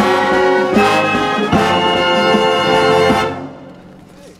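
An outdoor band plays a lively brass tune and stops on a final chord.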